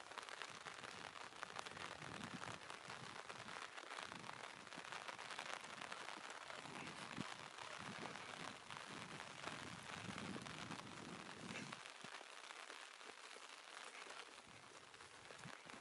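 Wind blows and gusts outdoors, buffeting the microphone.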